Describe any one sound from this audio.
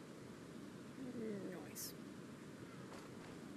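A bird calls outdoors.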